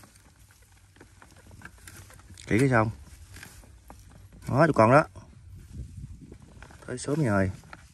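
A metal tool scrapes and digs into soil.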